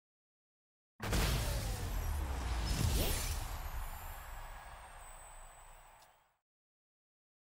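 A short victory fanfare from a video game plays loudly, then fades.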